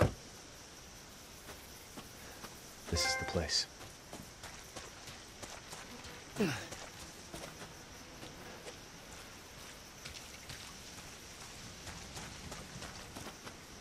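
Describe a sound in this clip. Footsteps crunch through dry leaves and brush.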